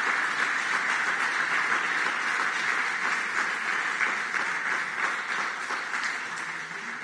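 A seated crowd applauds steadily in a large room, slowly fading a little.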